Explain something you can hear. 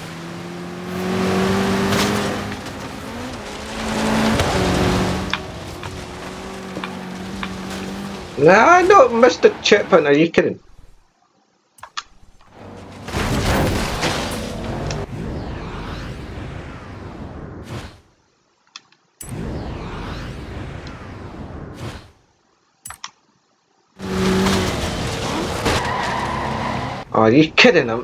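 A car engine roars and revs as it speeds along.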